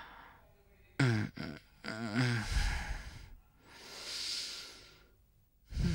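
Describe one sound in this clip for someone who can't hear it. A man yawns loudly.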